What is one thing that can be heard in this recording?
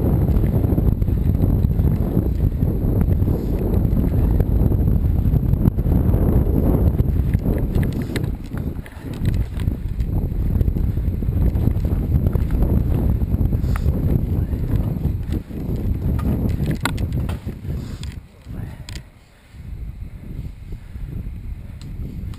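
Wind rumbles loudly across a microphone.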